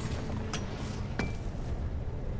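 A mining beam zaps and crackles against rock.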